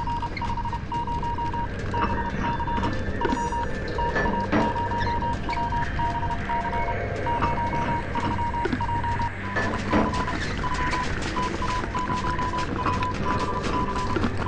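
A machine ticks and beeps in a quick steady rhythm.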